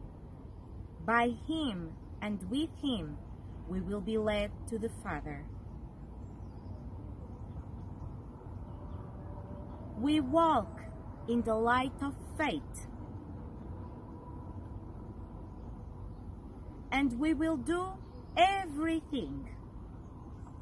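A young woman reads aloud calmly, close by, in short bursts with pauses.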